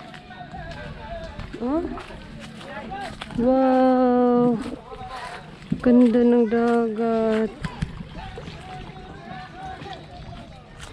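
Small waves lap gently against rocks.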